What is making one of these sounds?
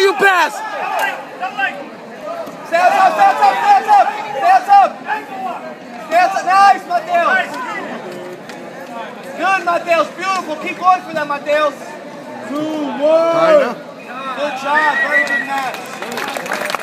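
Men in a crowd shout encouragement loudly in a large echoing hall.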